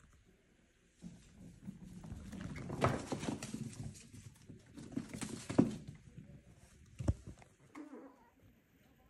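Paper pads rustle and crinkle as puppies tumble on them.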